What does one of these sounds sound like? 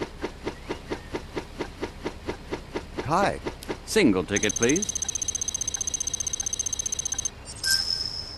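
A rapid ticking counts up a tally.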